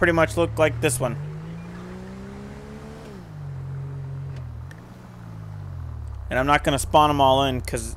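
A car engine revs and hums as a car pulls away.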